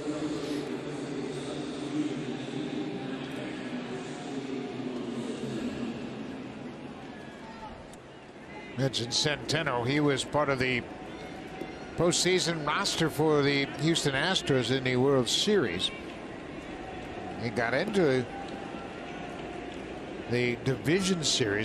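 A large crowd murmurs and cheers in a big open stadium.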